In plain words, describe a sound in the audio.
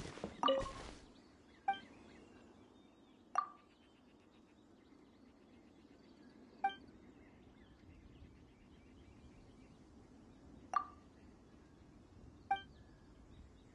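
Short bright chimes ring out now and then.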